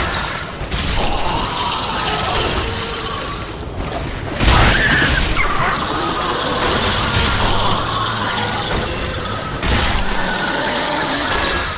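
Heavy sword blows strike and clang.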